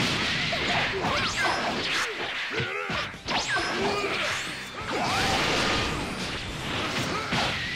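Swooshing whooshes sweep past quickly.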